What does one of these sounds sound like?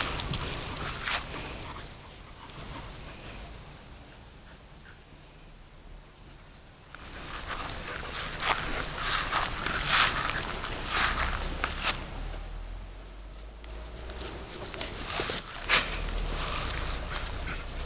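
Dogs' paws patter across grass.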